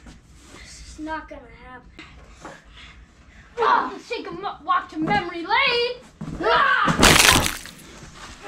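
Young boys shout and yell excitedly close by.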